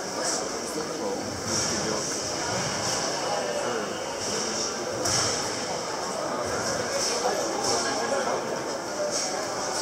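A karate athlete shouts sharply during the moves.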